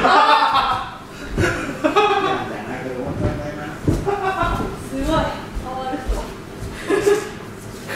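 An elderly man speaks calmly nearby in a slightly echoing room.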